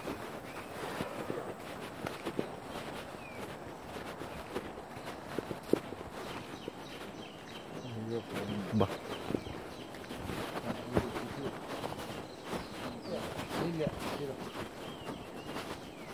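Footsteps scuff on a dirt road.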